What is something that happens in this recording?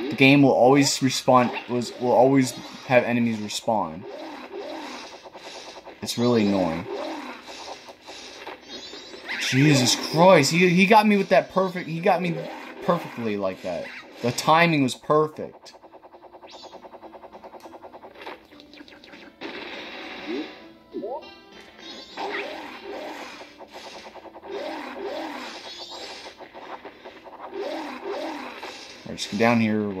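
Electronic game music plays with chimes and whooshing effects.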